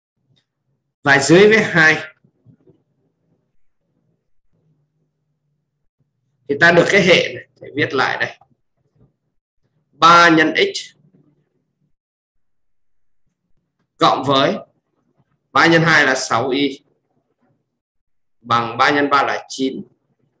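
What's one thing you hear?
A young man speaks calmly into a close microphone in short phrases with pauses.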